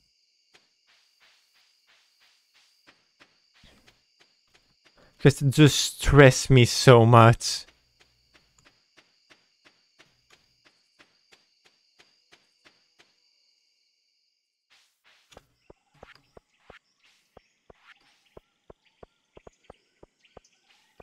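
Soft footsteps tap steadily along a path.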